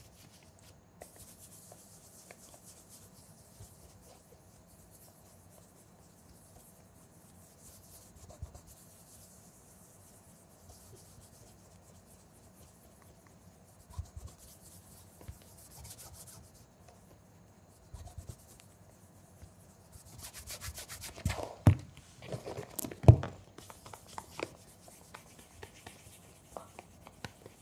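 A cloth rubs softly over leather with a faint swishing.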